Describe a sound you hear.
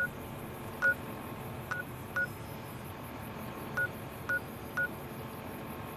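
Short electronic beeps click in quick succession.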